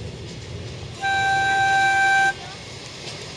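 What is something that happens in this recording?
A railway crossing signal sounds a steady ringing tone.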